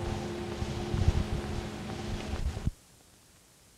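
A vehicle rumbles and hums while driving.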